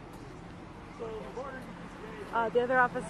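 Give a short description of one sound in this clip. A man speaks loudly into a handheld radio close by.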